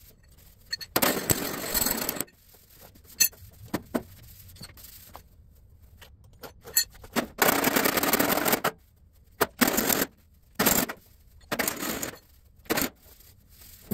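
A pneumatic tool grinds metal in short, loud bursts.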